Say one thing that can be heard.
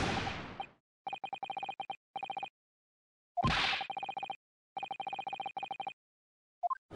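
Short electronic blips tick rapidly in quick bursts.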